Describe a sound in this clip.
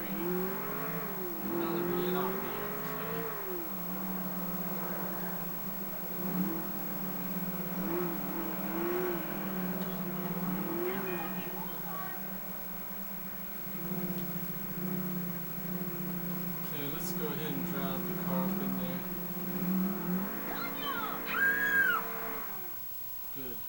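A muscle car engine revs and drones through a television speaker.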